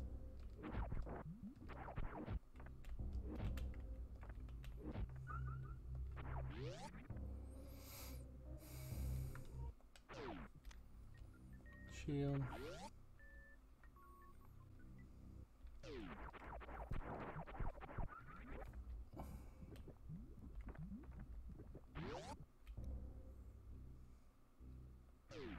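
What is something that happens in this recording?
Synthesized video game music plays steadily.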